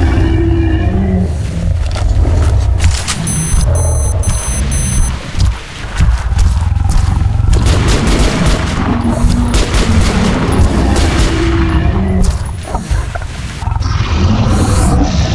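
Strong wind roars.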